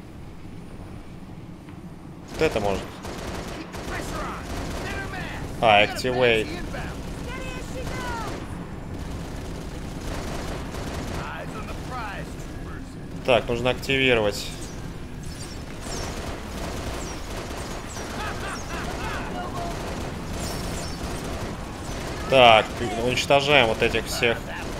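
Cannon fire rattles in rapid bursts.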